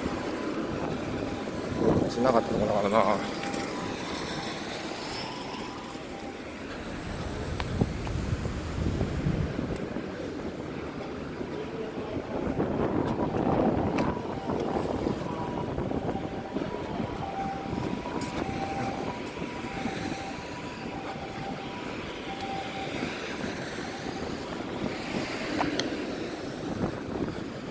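Cars pass by on a road nearby.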